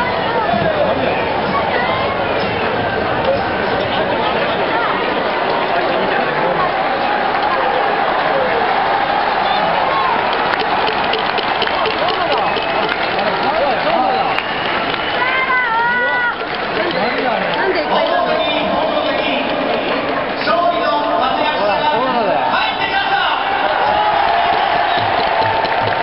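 Many voices chant and sing together in a stadium crowd.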